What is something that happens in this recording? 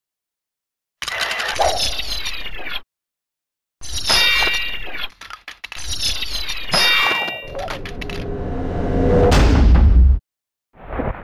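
A magic spell whooshes and crackles loudly.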